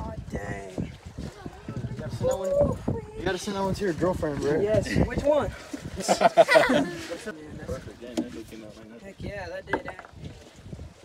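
Men talk and exclaim excitedly close by.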